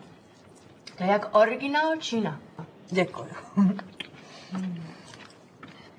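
A middle-aged woman speaks.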